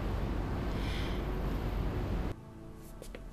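A car's engine hums low and steady from inside the cabin.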